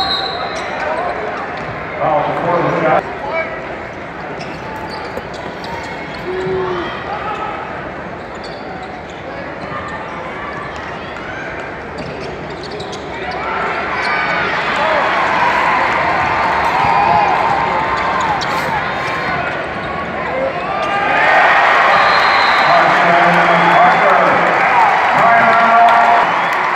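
A crowd cheers and chatters loudly in a large echoing arena.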